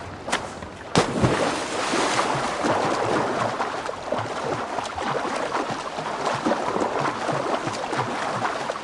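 Water churns and splashes as someone swims.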